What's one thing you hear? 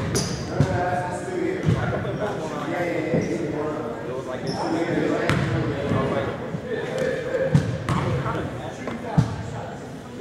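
A basketball bounces with hollow thuds on a wooden floor.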